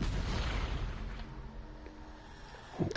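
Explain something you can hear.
A short musical sting plays as a round ends.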